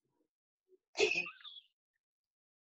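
A girl laughs briefly over an online call.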